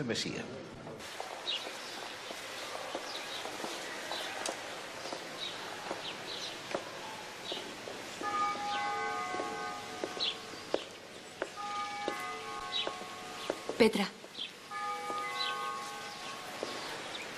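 Footsteps echo slowly in a large stone hall.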